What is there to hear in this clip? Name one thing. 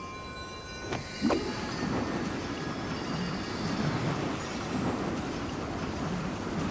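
Magical whooshing and sparkling effects burst in quick succession.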